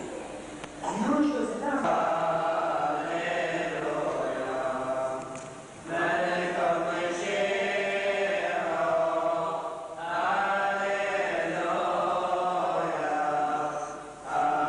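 A man chants in long, melodic phrases through a microphone, echoing in a large room.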